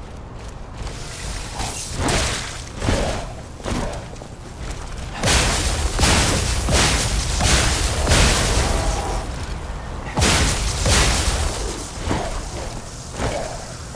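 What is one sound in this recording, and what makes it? Heavy blows and blade strikes crash in a fight.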